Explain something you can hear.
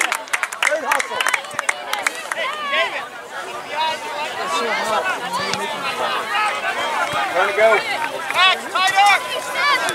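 Young players shout and call out to each other across an open field.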